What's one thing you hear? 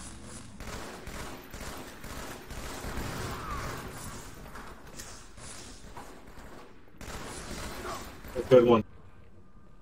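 Rapid gunfire bursts out in quick volleys.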